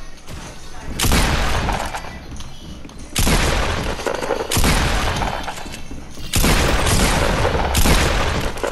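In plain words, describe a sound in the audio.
Gunshots fire in quick loud bursts.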